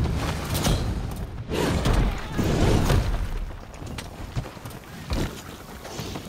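A heavy blade swings and strikes with loud thuds.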